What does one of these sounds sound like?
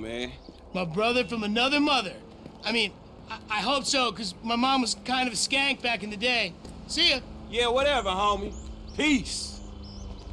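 A young man talks loudly and with animation, close by.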